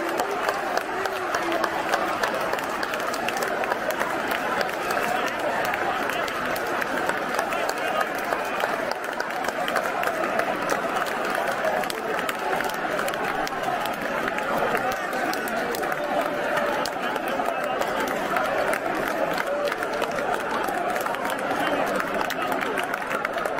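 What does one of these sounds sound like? Spectators nearby clap their hands.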